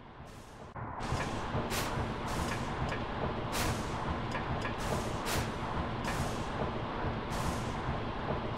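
Steam hisses from a large machine, with a loud, steady rumble.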